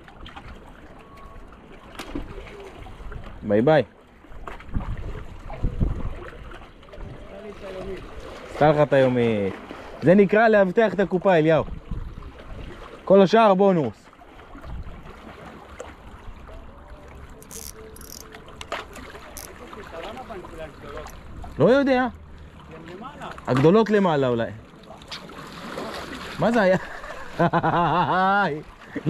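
Small waves lap gently against rocks.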